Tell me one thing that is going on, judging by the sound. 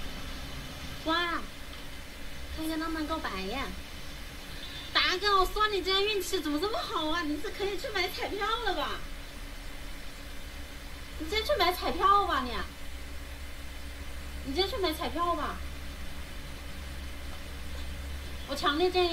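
A young woman speaks close by in a high voice.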